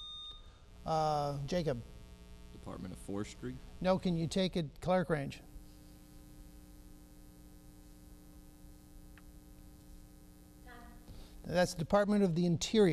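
An older man speaks clearly into a microphone.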